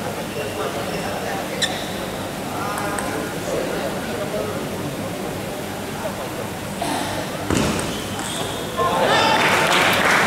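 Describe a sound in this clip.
A ping-pong ball clicks against paddles and the table in a large echoing hall.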